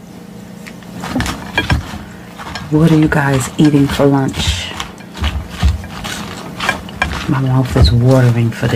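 A fork clinks against a glass bowl.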